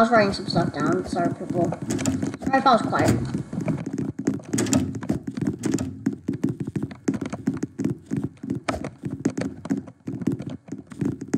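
Quick footsteps thump on a wooden floor.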